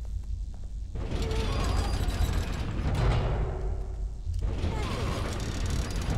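A heavy metal gate grinds and rattles as it is forced open.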